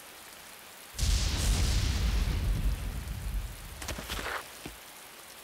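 Heavy rain pours down.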